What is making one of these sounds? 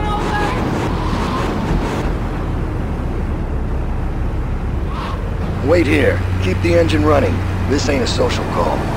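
A car engine rumbles steadily as the car drives along.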